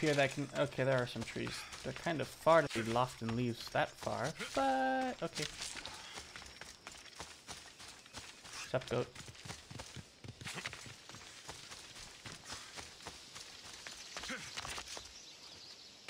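Footsteps crunch on grass and rock.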